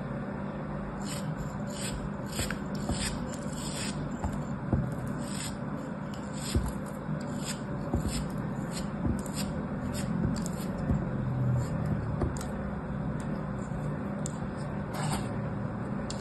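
A blade scrapes and crumbles through soft sand with crisp, crackly sounds.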